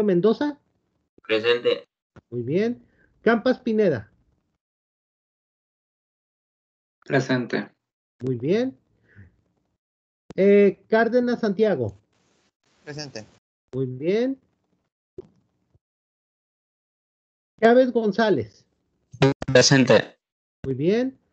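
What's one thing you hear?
A man speaks calmly in pauses over an online call.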